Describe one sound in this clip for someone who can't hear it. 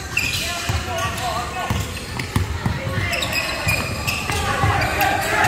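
Young players call out to each other across an echoing hall.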